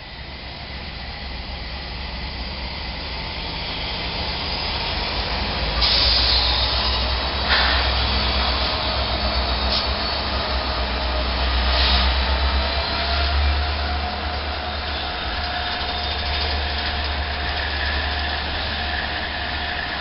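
Diesel locomotives rumble loudly as they pass close by.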